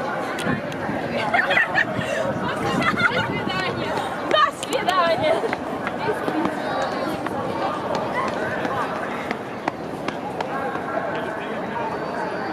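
Footsteps shuffle on cobblestones nearby.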